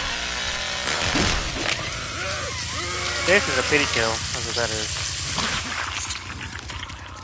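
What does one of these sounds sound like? A chainsaw roars loudly and revs.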